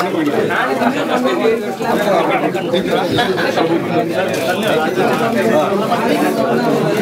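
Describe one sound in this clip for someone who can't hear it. A crowd of men talks over one another close by.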